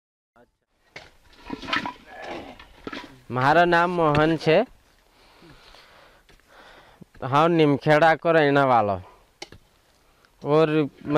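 A spade scrapes and digs into soil.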